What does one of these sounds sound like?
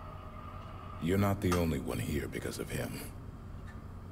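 A deep-voiced man answers calmly and firmly, close by.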